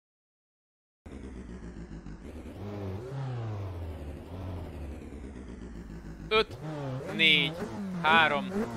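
A racing car engine idles and revs up and down.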